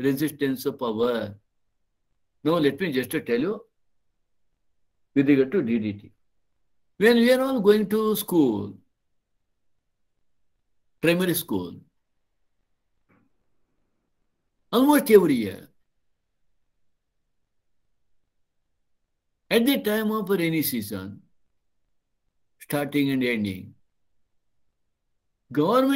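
An elderly man speaks calmly in bursts with pauses, heard through an online call.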